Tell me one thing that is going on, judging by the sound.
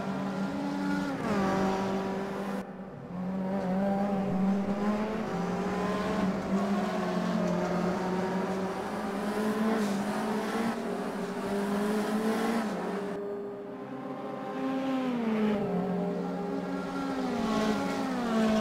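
A racing car engine roars at high revs, dropping in pitch with each gear change.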